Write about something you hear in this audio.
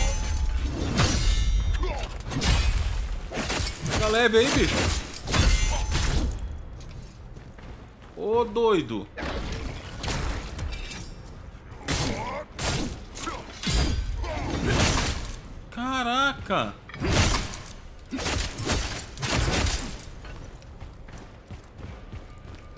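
Heavy weapons slash and thud against armour in a fight.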